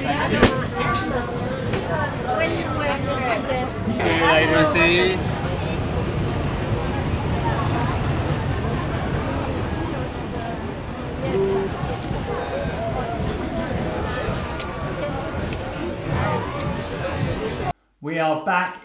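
Men talk outdoors amid a busy crowd.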